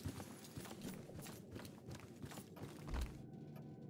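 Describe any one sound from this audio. Footsteps tread softly across a wooden floor.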